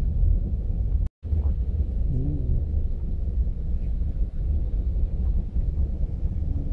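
A car engine rumbles low and steady from inside the car.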